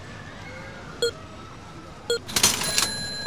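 Short electronic beeps chime twice.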